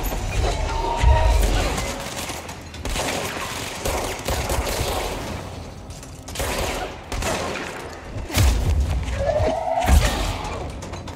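Explosions boom with a deep rumble.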